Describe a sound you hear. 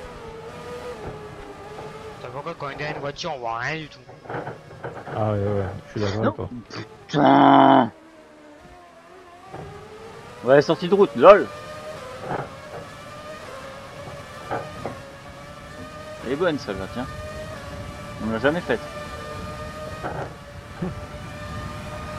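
A racing car engine whines and revs up through the gears.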